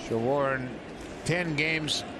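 A crowd murmurs in a large open stadium.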